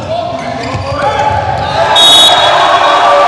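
A volleyball is spiked hard and smacks the floor.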